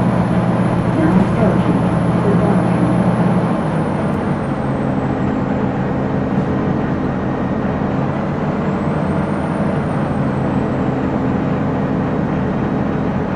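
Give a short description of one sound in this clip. A bus engine idles with a low steady rumble.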